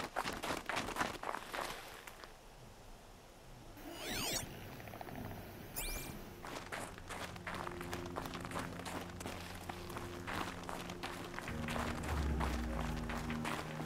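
Footsteps crunch quickly over snow and gravel.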